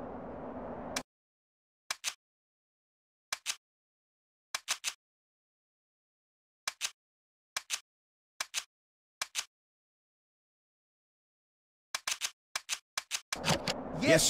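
Menu sounds click and blip in quick short bursts.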